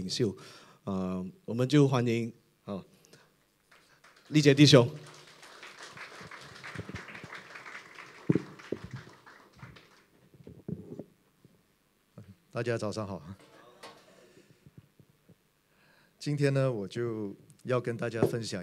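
A man speaks with animation through a microphone in a large echoing room.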